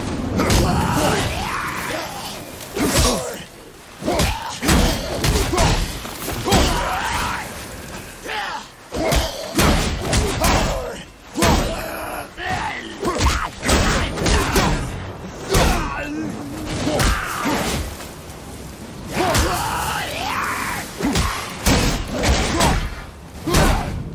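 A shield clangs as it blocks blows.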